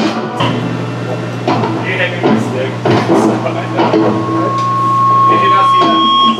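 Distorted electric guitars play loud heavy chords.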